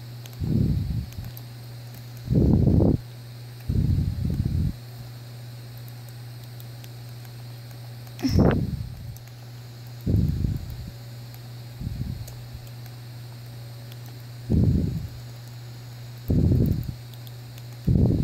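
A handheld game console plays game sound effects through its small speaker, in short bursts.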